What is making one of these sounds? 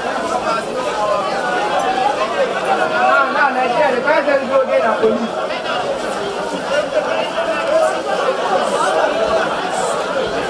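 A crowd of men and women talk and shout over one another outdoors.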